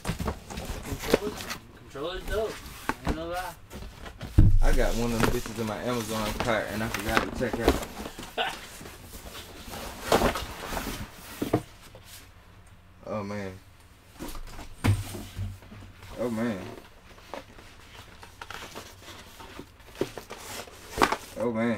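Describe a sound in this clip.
Cardboard and plastic packaging rustles and thumps as a box is handled.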